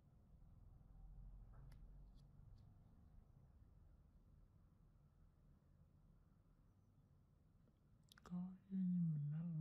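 Metal tweezers click faintly.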